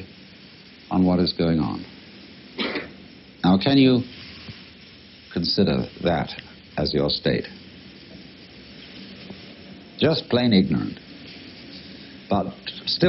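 A man speaks calmly with long pauses.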